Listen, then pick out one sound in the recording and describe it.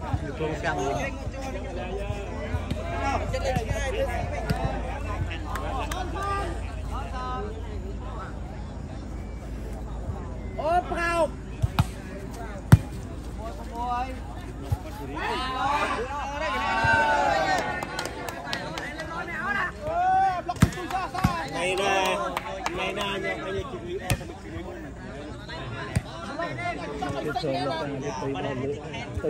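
A crowd of young men shouts and chatters outdoors.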